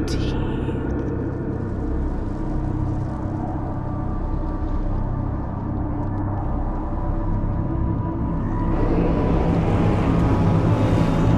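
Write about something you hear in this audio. Thunder cracks and rumbles.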